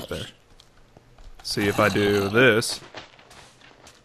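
Sand blocks crunch as they are dug out.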